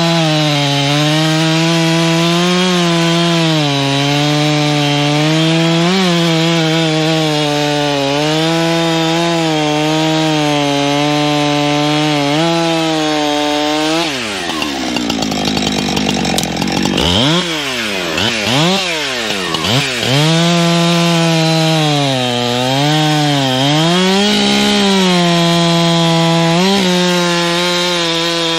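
A chainsaw cuts through a log, roaring steadily close by.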